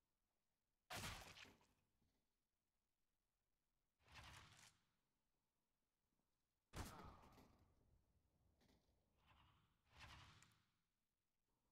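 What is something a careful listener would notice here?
Loud gunshots crack, each followed by a short echo.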